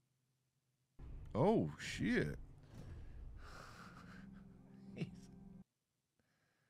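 A man speaks with animation into a nearby microphone.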